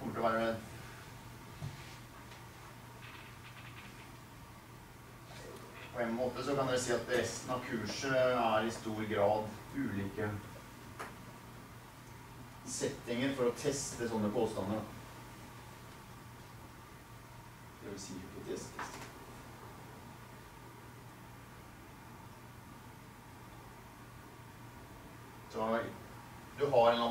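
An elderly man lectures calmly in an echoing room, in bursts with pauses.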